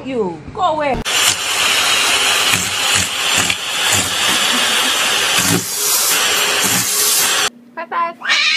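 A vacuum cleaner roars steadily up close.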